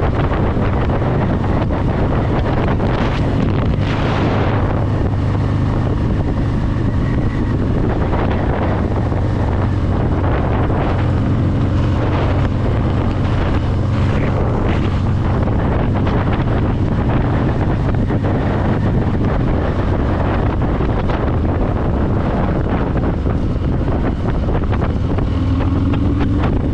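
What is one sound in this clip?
A motorcycle engine rumbles steadily up close while riding.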